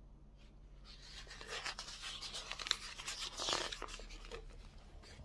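Glossy magazine pages rustle as they are turned.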